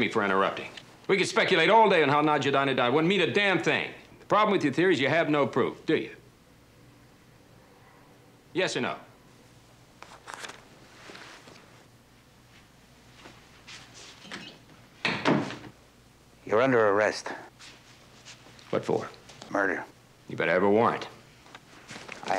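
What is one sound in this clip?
A younger man speaks up close in a firm, clipped voice.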